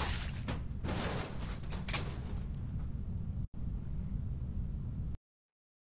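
Wooden planks clatter and crash as they are knocked over.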